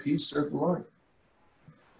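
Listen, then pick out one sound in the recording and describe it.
A middle-aged man speaks calmly through a microphone on an online call.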